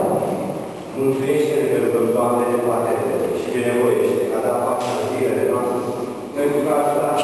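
A man sings slow, held notes through a microphone.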